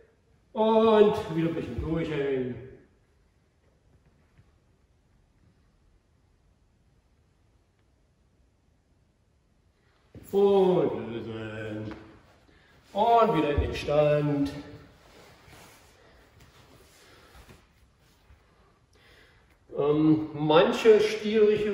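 An older man speaks calmly, giving instructions.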